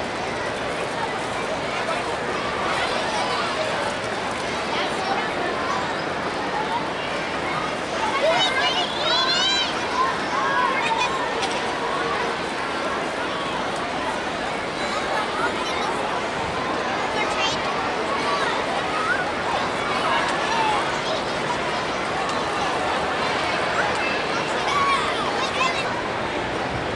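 Young girls chatter and call out close by.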